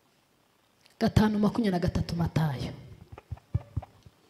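A woman reads aloud through a microphone.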